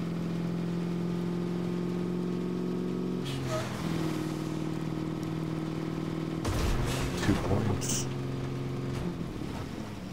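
A truck engine hums steadily as it drives.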